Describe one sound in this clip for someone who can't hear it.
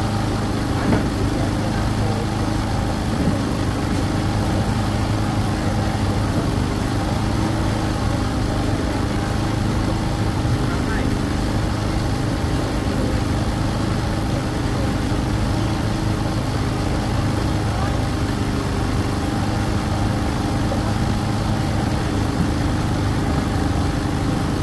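A man scrapes and shifts things inside a cooler.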